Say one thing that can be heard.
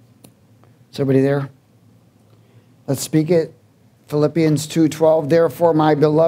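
A man speaks slowly and earnestly into a microphone, with pauses.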